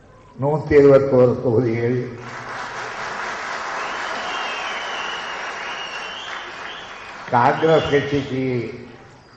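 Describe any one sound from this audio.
An elderly man speaks into a microphone in short bursts.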